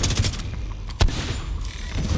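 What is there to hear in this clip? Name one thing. A rifle fires a sharp shot.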